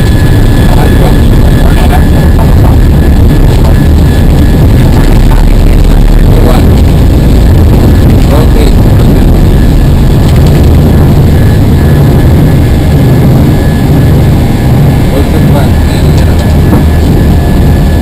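Jet engines roar loudly and steadily inside a cockpit.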